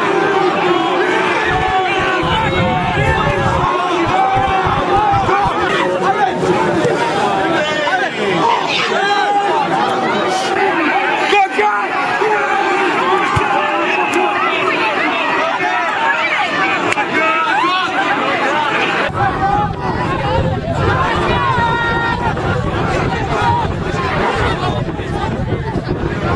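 A large crowd of young men shouts and chants loudly outdoors.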